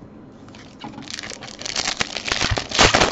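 Foil wrapping crinkles and tears as hands rip open a card pack.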